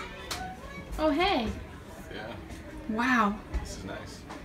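A young woman speaks with excitement close by.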